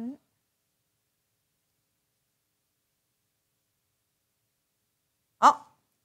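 A woman speaks briefly, close to a microphone.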